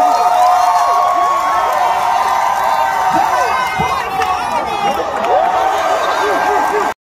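A crowd cheers and screams close by.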